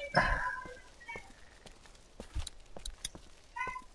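Footsteps tap softly on pavement.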